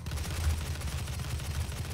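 Fireballs whoosh and burst nearby.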